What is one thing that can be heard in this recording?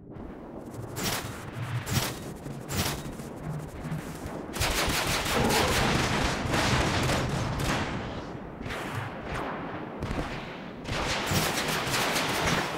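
Gunfire and explosions from a video game crackle and boom.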